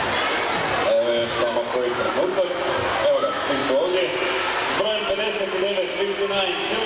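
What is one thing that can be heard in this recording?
Music plays loudly over loudspeakers.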